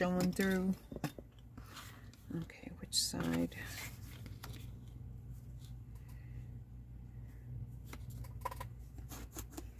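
Cardboard slides and rustles on a mat.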